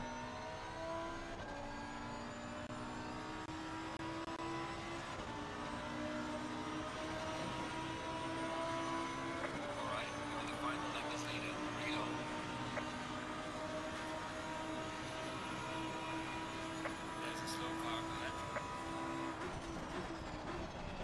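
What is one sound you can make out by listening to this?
A race car engine roars at high revs, climbing through the gears.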